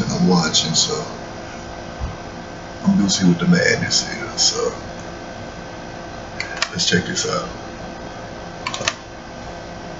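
A man talks calmly and close to a microphone, with pauses.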